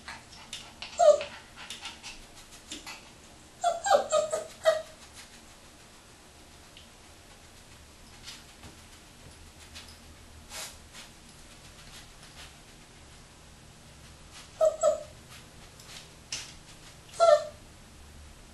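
A puppy gives short, high yelps.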